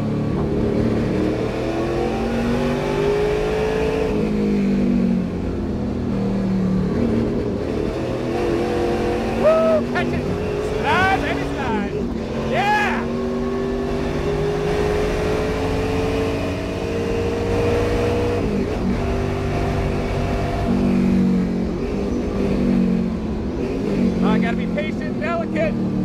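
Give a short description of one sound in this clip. A race car engine roars loudly from inside the cabin, revving up and dropping with each gear change.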